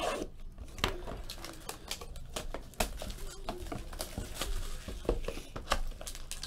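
Plastic wrap crinkles and tears as a box is unwrapped.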